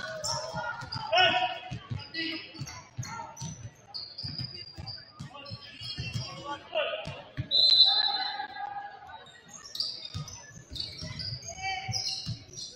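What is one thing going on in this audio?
Young players shout to each other across the court.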